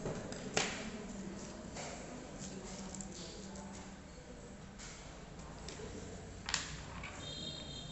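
Wooden matchsticks tap and slide softly on paper.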